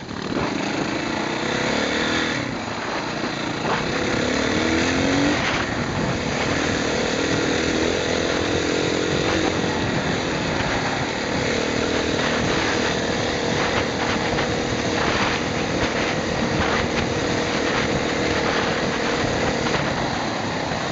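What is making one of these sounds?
A dirt bike engine revs and drones up close, rising and falling in pitch.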